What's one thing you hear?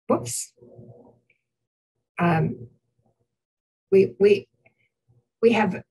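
An older woman speaks in short bursts over an online call.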